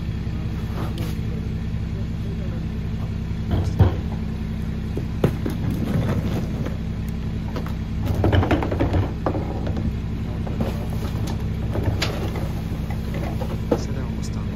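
Plastic trash bins bump and clatter against a truck.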